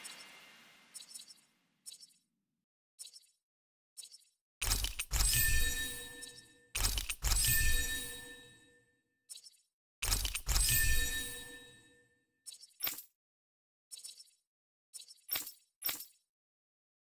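Short soft menu clicks tick now and then.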